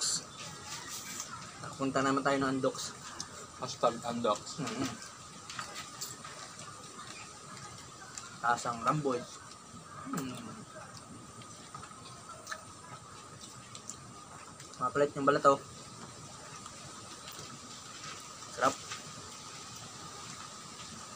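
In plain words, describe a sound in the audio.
Lips smack wetly as food is eaten.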